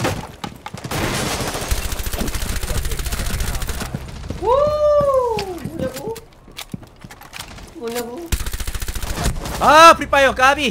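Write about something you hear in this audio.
Rapid gunfire rattles in long bursts.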